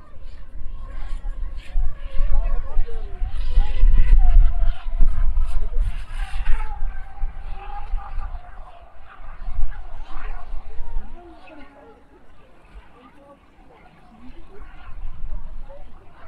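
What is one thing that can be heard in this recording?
A small model boat motor whines over water.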